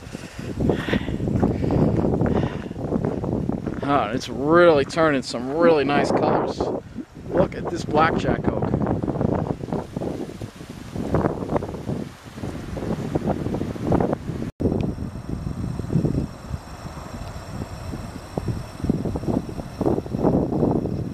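Wind rustles through leafy bushes and trees outdoors.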